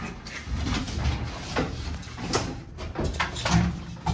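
A metal enclosure door rattles and slides open.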